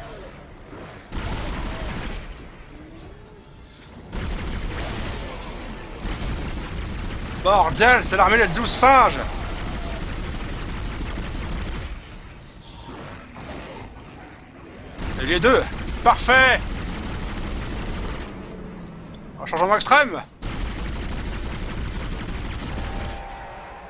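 A sci-fi gun fires in short bursts.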